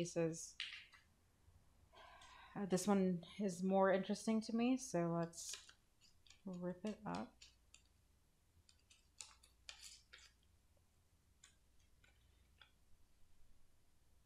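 Paper cut-outs rustle and crinkle as hands handle them.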